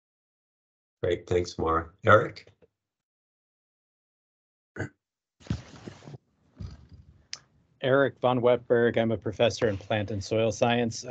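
A man speaks calmly through an online call, with short pauses.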